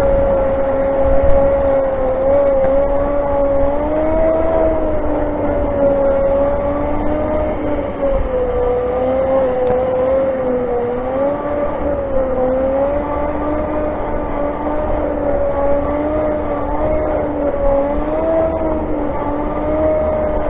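An electric motor whines steadily, its pitch wavering up and down.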